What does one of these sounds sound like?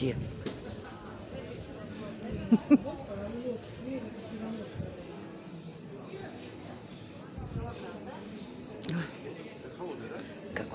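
Men and women chat nearby at an outdoor market.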